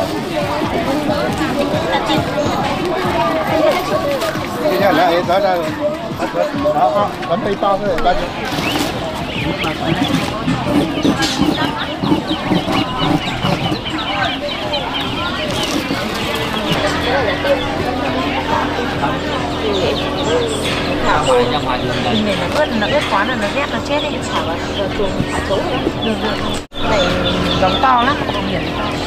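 Many ducklings peep shrilly and constantly.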